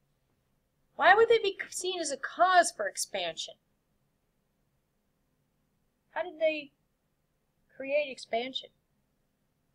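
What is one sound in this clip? A woman speaks calmly into a webcam microphone, in short bursts with long pauses.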